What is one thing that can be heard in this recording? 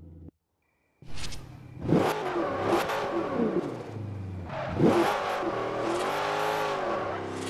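A racing car engine revs and roars, rising and falling in pitch as gears change.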